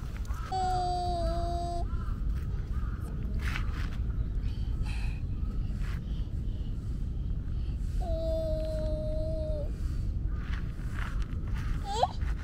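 A stick scratches in gravelly sand.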